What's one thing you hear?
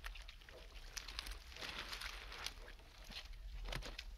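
Hands scrape and pick through wet pebbles and mud.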